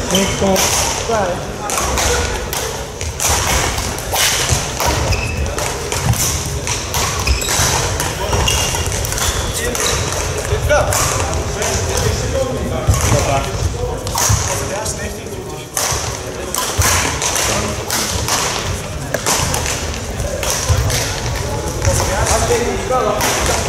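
Shuttlecocks are struck with rackets in quick, sharp pops.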